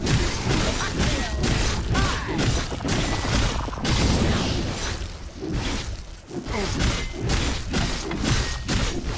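Blades clash and strike in quick, repeated blows.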